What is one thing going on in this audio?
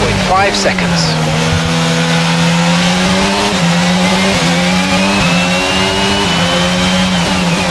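A racing car engine revs high and shifts up through the gears.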